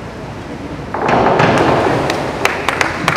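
A diver splashes into a pool.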